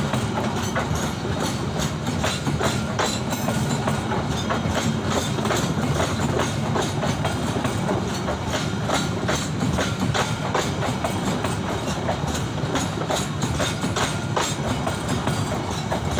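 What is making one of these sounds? Train wheels clatter over rail joints.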